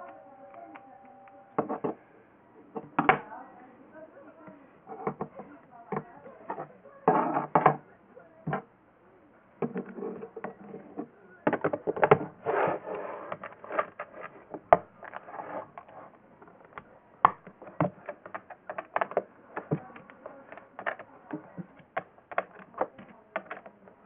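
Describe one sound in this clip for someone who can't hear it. Plastic toy bricks click and clatter as hands press them together.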